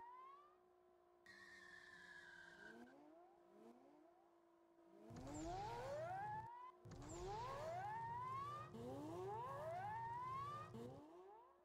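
A car engine revs up and shifts through gears repeatedly.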